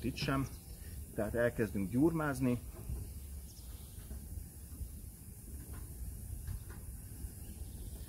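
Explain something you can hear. A gloved hand rubs across a smooth metal panel.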